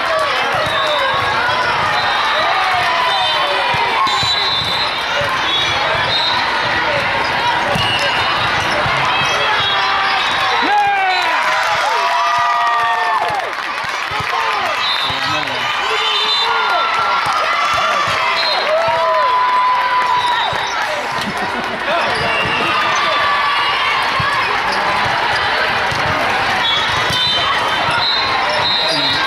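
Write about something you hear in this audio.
Squeaky sneakers screech on the court floor.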